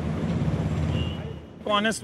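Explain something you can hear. A motorcycle engine rumbles as it rides past.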